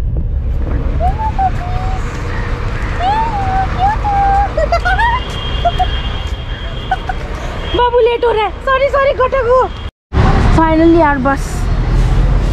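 Puppies whimper and whine close by.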